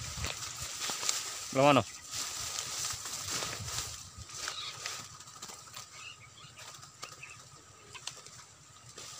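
Tall grass and leaves rustle and swish as people push through dense undergrowth on foot.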